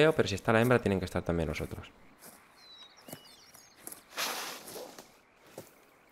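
Footsteps rustle through grass and bushes.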